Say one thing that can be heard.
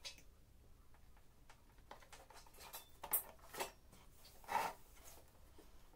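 Hands rub and handle a hollow plastic canister.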